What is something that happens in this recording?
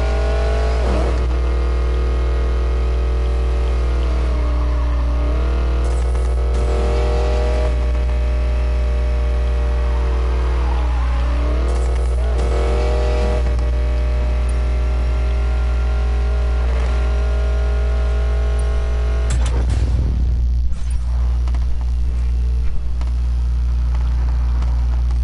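A racing car engine in a video game roars at high revs.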